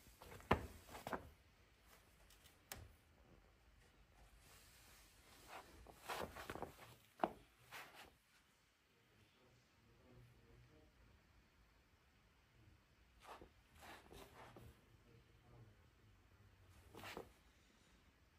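Shoes tap and scuff on a wooden floor.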